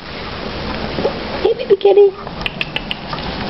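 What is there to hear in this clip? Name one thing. A kitten meows in a high, thin voice.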